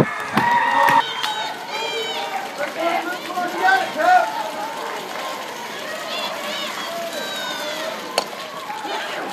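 Spectators call out and chatter in a crowd.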